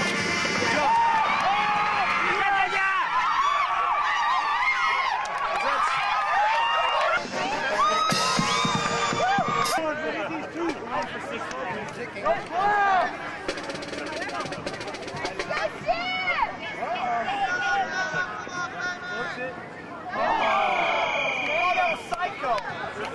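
A crowd of young men and women shouts and cheers outdoors.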